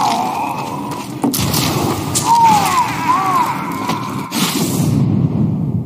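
A rocket launcher fires with a heavy whoosh.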